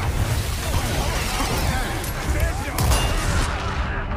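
Heavy blows thud in a close struggle.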